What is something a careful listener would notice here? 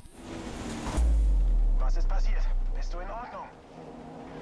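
A racing car crashes with a heavy thud and loud rumble.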